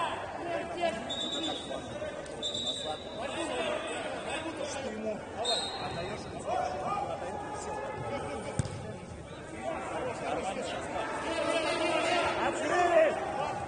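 Men shout to each other, in a large echoing hall.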